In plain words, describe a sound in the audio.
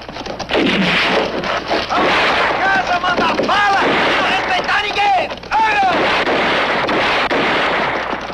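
Horses gallop over the ground.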